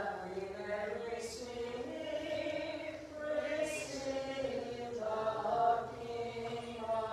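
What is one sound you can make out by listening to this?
Men chant slowly and steadily in a large echoing hall.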